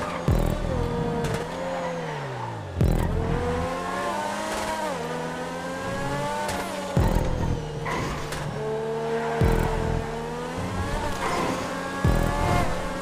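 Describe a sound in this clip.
A race car engine revs high and shifts gears repeatedly.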